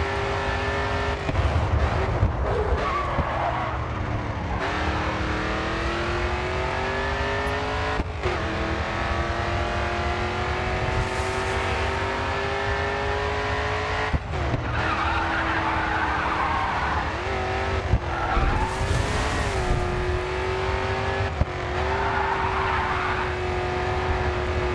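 A V8 muscle race car engine roars at high revs and shifts gears.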